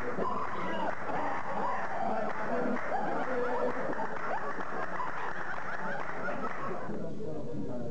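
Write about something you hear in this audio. Men clap their hands rhythmically.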